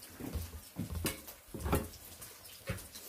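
Metal utensils clink against a pan.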